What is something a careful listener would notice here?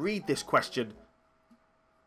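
A young man speaks with animation into a microphone, close up.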